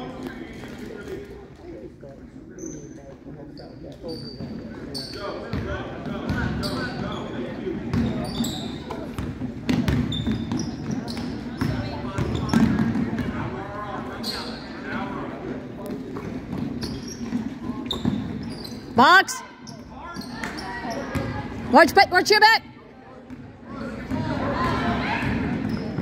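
A crowd of spectators murmurs and calls out in an echoing gym.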